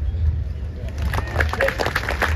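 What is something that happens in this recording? A golf ball is struck softly with a putter.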